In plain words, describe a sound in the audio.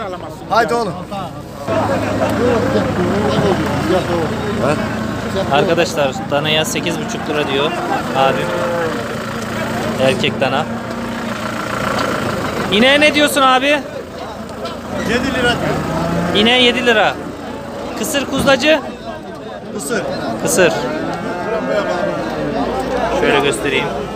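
A crowd of men chatter all around, outdoors.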